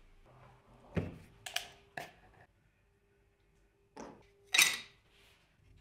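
Small plastic bottles clack down on a wooden bench.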